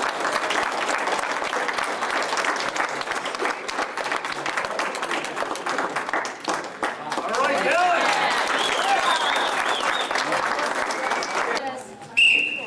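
A crowd of spectators murmurs and cheers.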